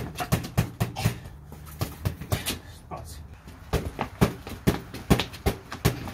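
Boxing gloves thump against a punching bag in quick bursts of blows.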